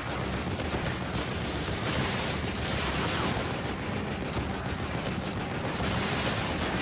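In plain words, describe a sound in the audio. Gunshots crack from a rifle.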